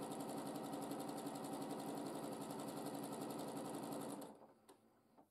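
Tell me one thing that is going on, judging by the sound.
A sewing machine runs with a fast, steady rattle.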